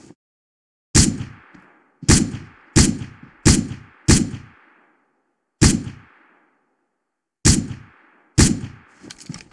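Rifle shots crack sharply one after another.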